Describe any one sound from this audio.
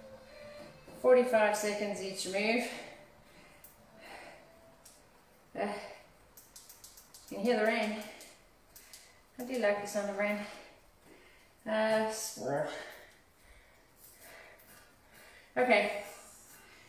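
A woman speaks in short bursts, close by and with animation.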